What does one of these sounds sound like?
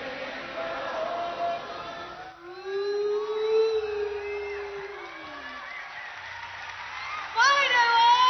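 A singer sings into a microphone.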